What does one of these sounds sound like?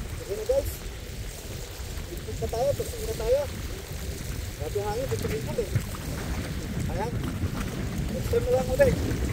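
A man speaks in short phrases nearby.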